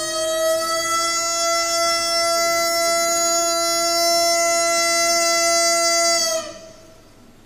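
A violin plays a long, steady held note that rings out and stops.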